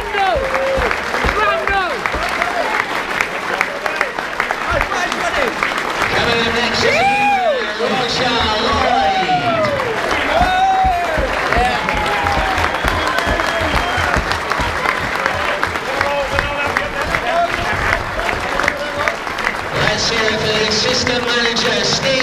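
A man announces over a loudspeaker, echoing across a stadium.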